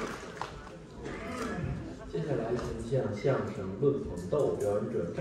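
A young man speaks calmly through a microphone and loudspeakers.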